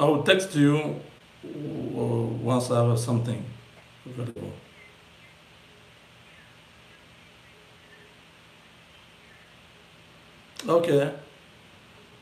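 A man talks calmly on a phone close by, with pauses.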